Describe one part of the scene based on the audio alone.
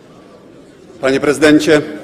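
A man speaks firmly into a microphone in a large echoing hall.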